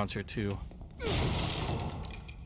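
A wooden crate smashes and splinters apart.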